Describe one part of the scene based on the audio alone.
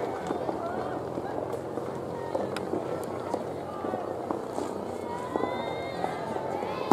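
A crowd of spectators chatters in the distance outdoors.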